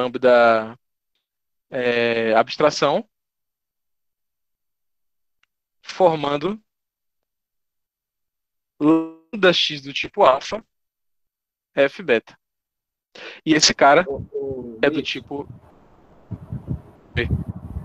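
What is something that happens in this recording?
A man speaks calmly over an online call, pausing often.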